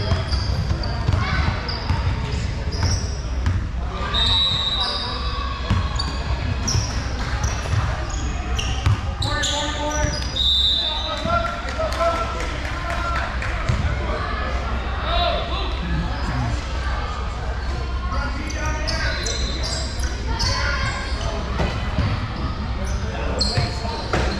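Players and spectators call out and chatter in a large echoing hall.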